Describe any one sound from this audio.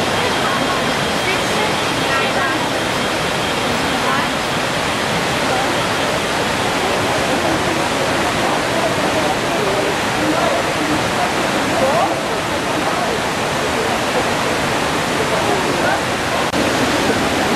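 A swollen river rushes over rocks and weirs with a steady roar.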